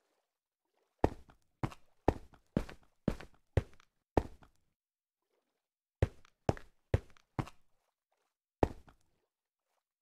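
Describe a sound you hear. Short sharp menu clicks sound in quick bursts.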